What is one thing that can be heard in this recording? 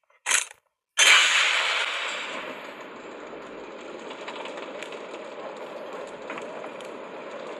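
A heavy robot's engine rumbles steadily as it moves.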